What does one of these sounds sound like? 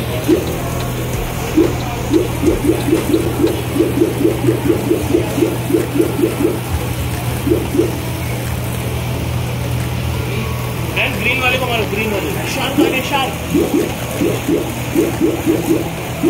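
Water sprays from a toy water gun.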